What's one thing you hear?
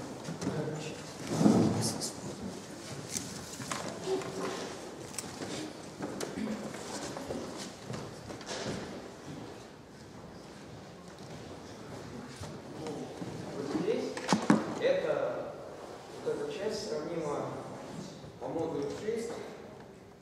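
A young man speaks calmly in a room with a slight echo.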